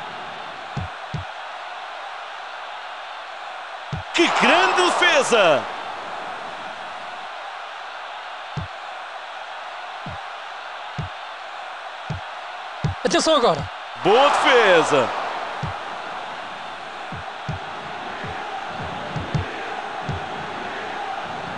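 A large crowd roars steadily.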